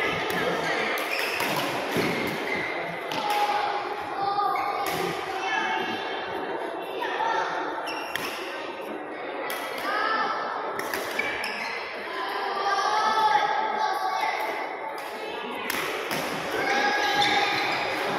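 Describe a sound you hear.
Badminton rackets hit shuttlecocks with sharp pops.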